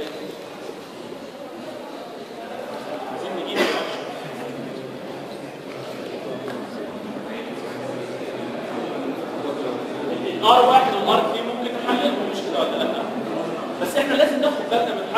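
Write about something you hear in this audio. A man speaks at a distance in an echoing room, as if lecturing.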